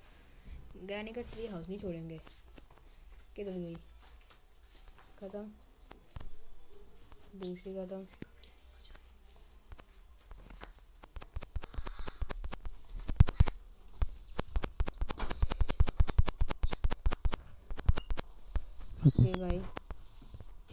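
A boy speaks into a microphone with animation.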